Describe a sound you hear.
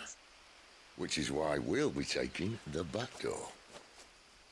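A second man answers calmly close by.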